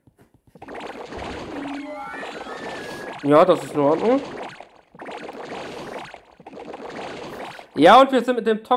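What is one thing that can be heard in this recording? Video game battle effects whoosh and thud.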